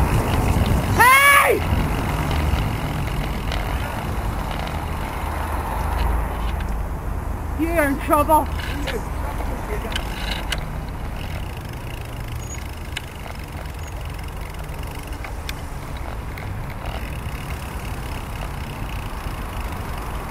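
Car engines rumble close by in slow traffic.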